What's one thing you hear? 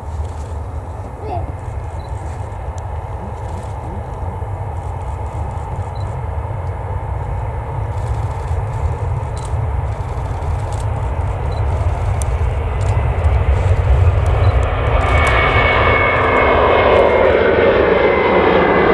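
Jet engines roar and grow steadily louder.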